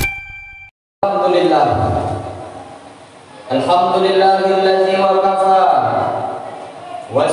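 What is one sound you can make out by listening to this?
A man speaks in a drawn-out, chanting voice through a microphone, in an echoing hall.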